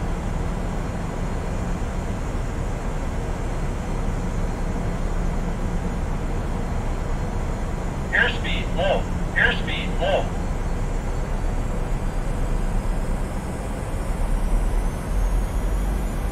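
Jet engines hum and rumble steadily from inside an airliner cockpit in flight.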